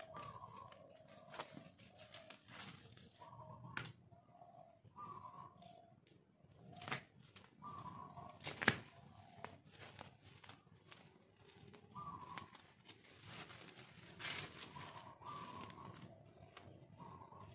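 Weeds rustle and tear as they are pulled up by hand.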